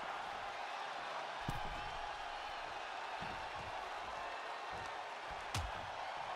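A large crowd roars and cheers in a large arena.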